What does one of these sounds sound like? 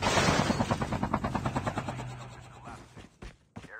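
Footsteps run quickly over grass.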